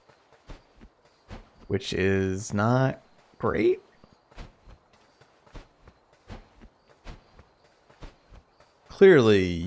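Footsteps tap lightly on stone.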